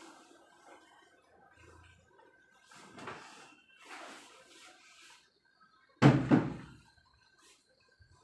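Silk fabric rustles as it is handled and spread out.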